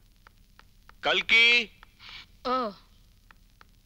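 A young woman calls out loudly in a high voice.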